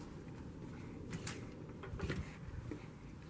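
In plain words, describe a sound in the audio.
A door latch clicks as a handle is turned.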